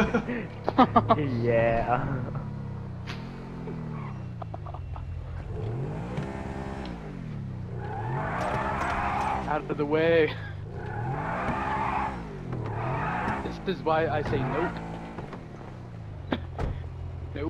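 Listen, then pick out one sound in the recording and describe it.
A sports car engine revs up and down repeatedly.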